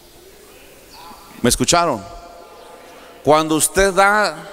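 A man preaches with animation through a microphone in a large echoing hall.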